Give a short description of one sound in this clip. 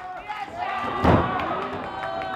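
A body slams hard onto a ring mat with a loud thud.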